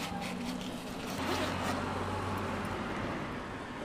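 A backpack zipper is pulled open.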